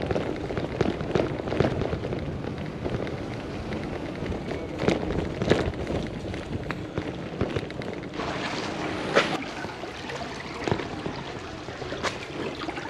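Footsteps scuff and tap on a rough paved street.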